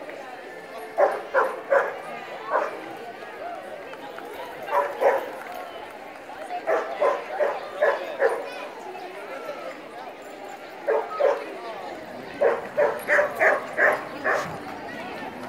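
A dog barks loudly in short bursts nearby.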